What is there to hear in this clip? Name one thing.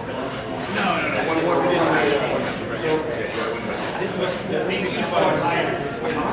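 A man talks calmly nearby in a large echoing hall.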